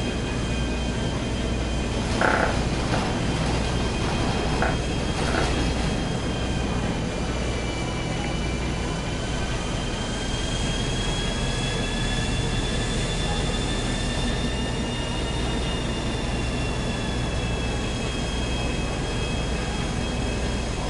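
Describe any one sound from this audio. A jet plane's engine roars steadily with a high whine.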